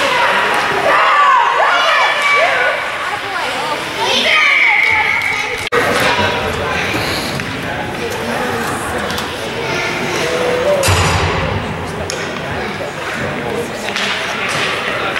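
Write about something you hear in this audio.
A crowd of spectators close by chatters and shouts in a large echoing rink.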